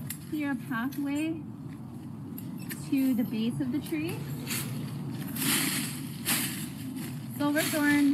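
A young woman talks calmly over an online call.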